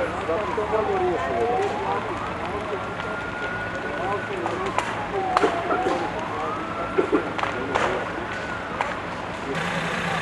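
A large fire crackles and pops.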